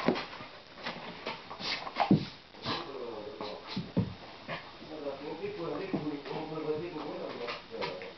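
A dog rustles and tugs at a pile of cloth.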